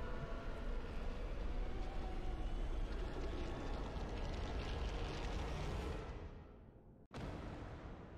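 Thunder rumbles and crackles loudly, then fades away.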